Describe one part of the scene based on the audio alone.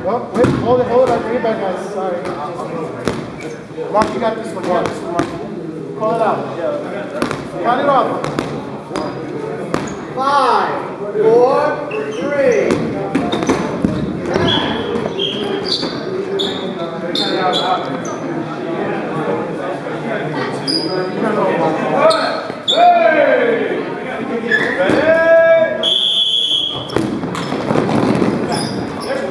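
Many voices of men shout and call out in a large echoing hall.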